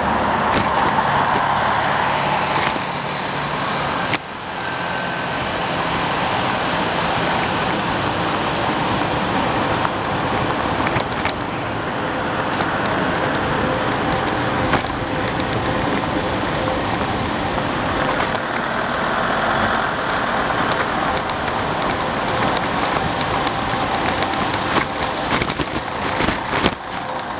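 Wind rushes and buffets loudly while moving along a street outdoors.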